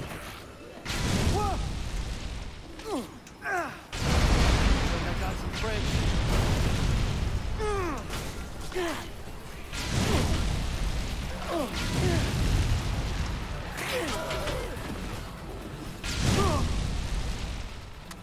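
Explosions boom and flames roar in bursts.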